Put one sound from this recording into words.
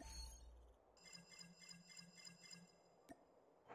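A bright jingle of short chimes plays in quick succession.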